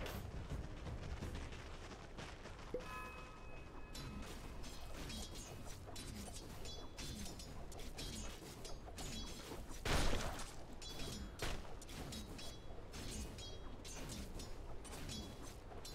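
Weapons clash and strike over and over in a game battle.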